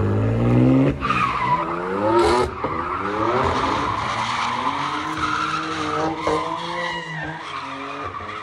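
Tyres squeal and screech on tarmac.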